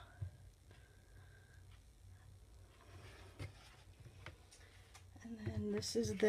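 Stiff paper pages rustle and flap as they are turned by hand.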